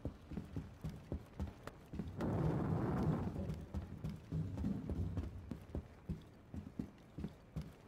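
Heavy boots thud in steady footsteps on a hard floor.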